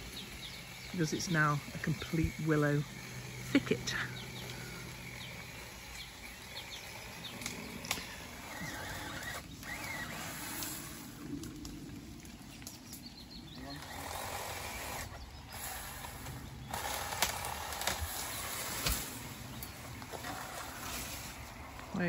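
Leaves rustle in a light wind outdoors.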